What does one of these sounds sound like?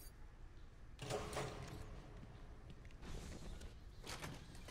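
A heavy metal door clanks open.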